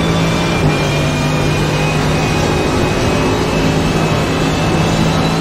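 Wind rushes past the racing car.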